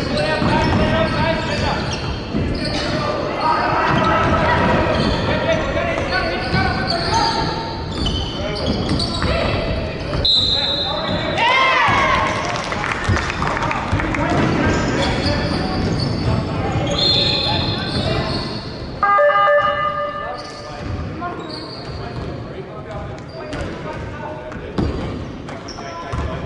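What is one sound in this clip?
A crowd of spectators chatters throughout.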